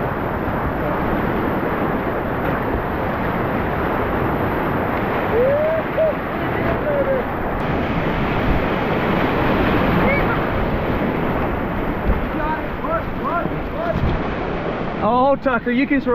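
Whitewater rushes and churns loudly close by.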